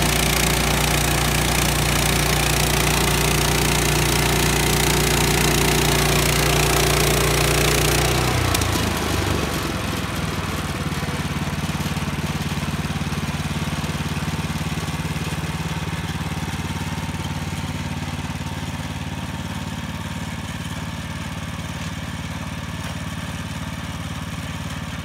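A sawmill engine drones steadily outdoors.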